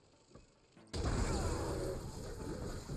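A mechanical beast crashes and roars in a fight.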